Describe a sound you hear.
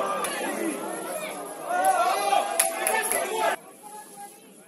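A crowd of spectators chatters and calls out across an open stadium.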